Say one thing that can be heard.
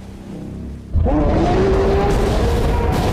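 A burst of energy roars and crackles.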